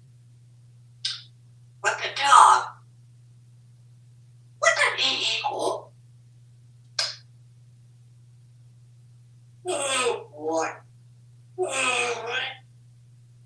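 A parrot squawks and chatters in short bursts.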